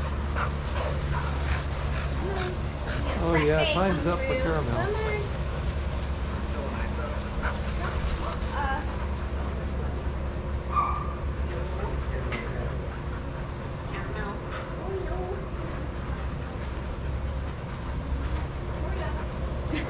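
Dogs pant nearby.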